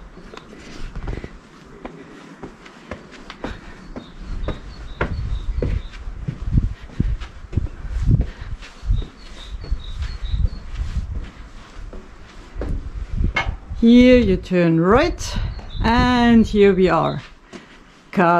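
Footsteps tread on stone steps and paving.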